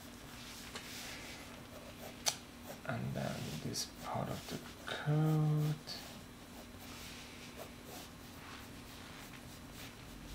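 A pencil scratches and scrapes on paper.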